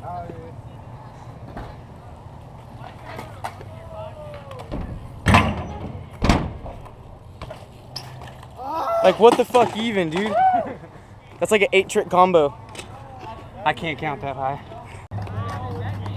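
Bike tyres roll over concrete.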